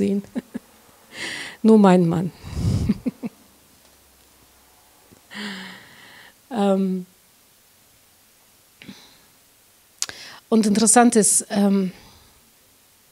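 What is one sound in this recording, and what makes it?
A woman speaks into a microphone in short phrases with pauses, warmly and with animation.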